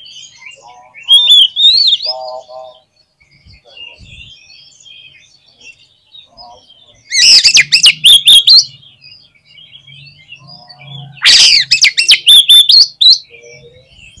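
A songbird sings loud, varied whistling phrases close by.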